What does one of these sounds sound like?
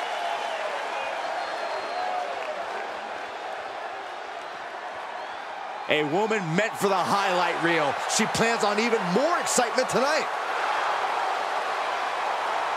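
A large crowd murmurs and cheers in a big arena.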